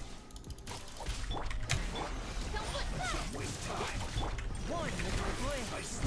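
Video game combat effects crackle and zap loudly.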